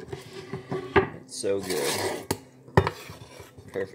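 A knife knocks on a cutting board.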